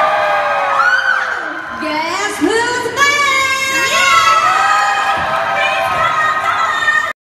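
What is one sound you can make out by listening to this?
Young women sing into microphones, heard through loudspeakers in a large echoing hall.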